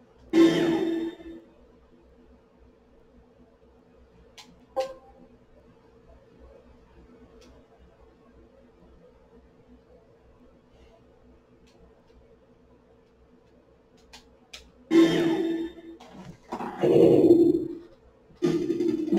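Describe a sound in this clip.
A video game plays short, loud bursts of music and sound effects.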